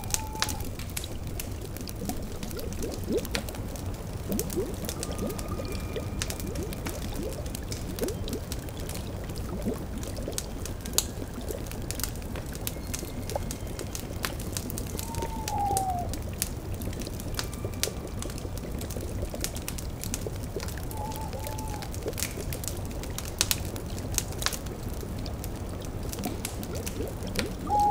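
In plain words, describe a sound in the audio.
A cauldron bubbles steadily.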